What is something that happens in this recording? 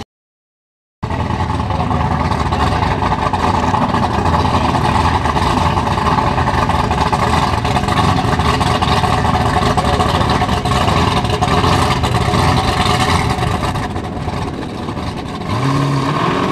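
A supercharged V8 drag car idles with a lumpy rumble.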